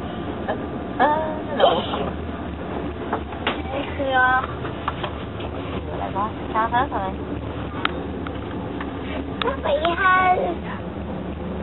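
A young girl talks and squeals nearby.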